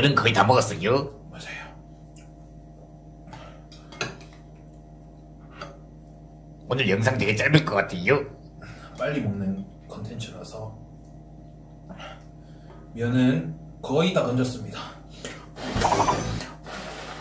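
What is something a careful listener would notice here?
A man slurps noodles loudly, close by.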